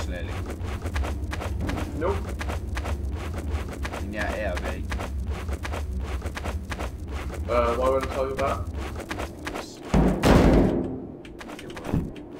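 Footsteps crunch steadily on sand.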